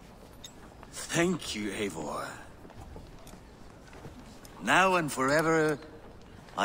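A man answers in a deep, warm voice up close.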